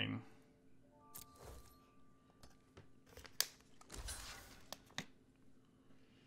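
Game sound effects chime and whoosh as cards attack.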